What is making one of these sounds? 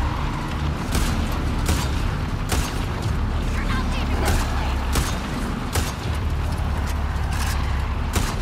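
A rifle fires sharp shots in quick bursts.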